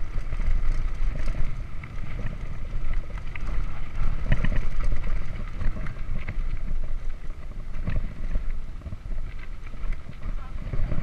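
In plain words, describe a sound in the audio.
Bicycle tyres crunch and rattle over a rough gravel track.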